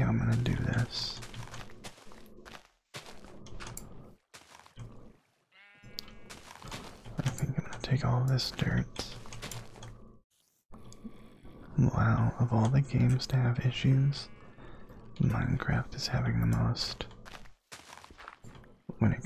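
Dirt crunches as it is dug out in quick, repeated scrapes.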